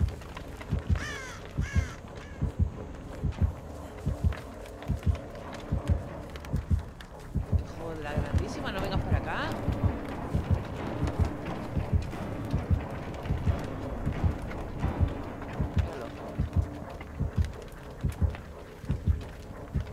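Footsteps thud on soft ground.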